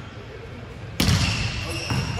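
A volleyball is struck with a sharp smack in a large echoing hall.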